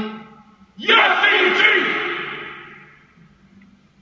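A man shouts loudly, echoing through a large room.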